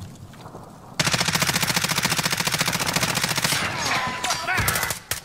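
An automatic rifle fires a rapid burst of shots.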